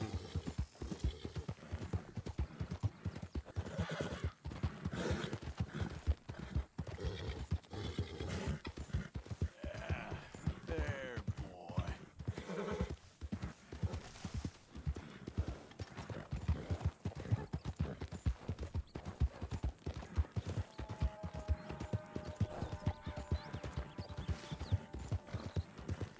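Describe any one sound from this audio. Horse hooves pound steadily on a dirt trail at a gallop.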